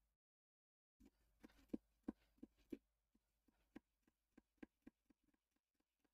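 A knife scrapes and cuts into a pumpkin.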